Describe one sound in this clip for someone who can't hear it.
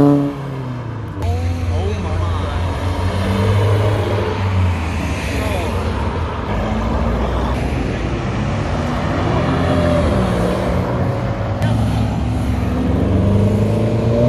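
A car engine rumbles deeply as a car drives slowly past.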